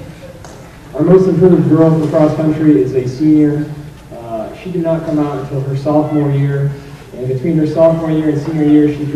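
A young man speaks calmly into a microphone, heard through a loudspeaker in a large hall.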